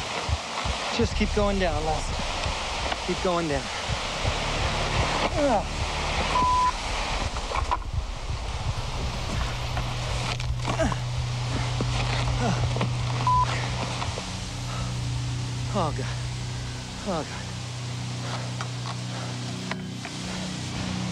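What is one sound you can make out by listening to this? A man pants and speaks breathlessly close by.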